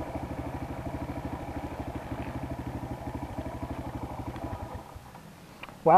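A motorcycle engine idles with a steady throb, then cuts off.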